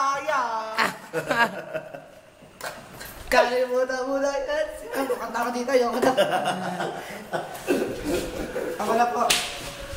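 A teenage boy talks close by with animation.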